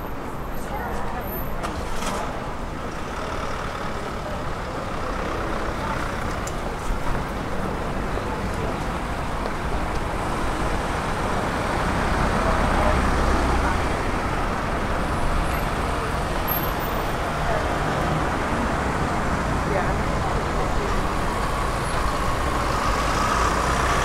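Traffic hums steadily along a street outdoors.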